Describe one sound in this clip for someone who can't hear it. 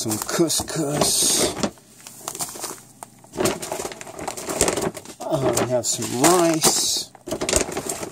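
A plastic bag crinkles as it is set down.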